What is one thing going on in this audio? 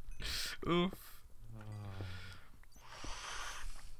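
A pickaxe chips repeatedly at stone.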